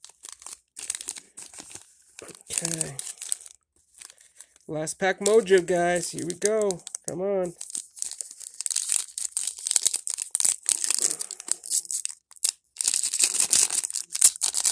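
A foil wrapper crinkles and rustles in hands.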